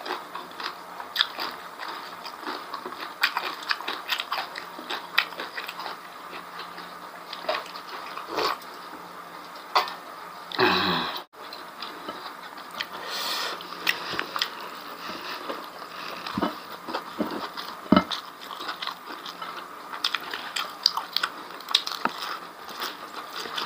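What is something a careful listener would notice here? A man chews food with his mouth close to a microphone.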